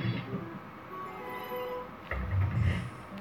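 A slot machine chimes a short run of bright tones for a win.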